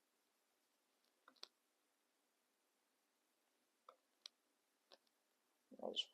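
Paper crinkles softly as it is folded by hand.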